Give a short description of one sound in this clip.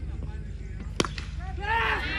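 A cricket bat cracks sharply against a ball.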